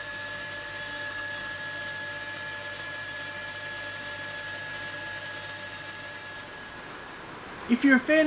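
A cordless drill whirs steadily, spinning a buffing pad.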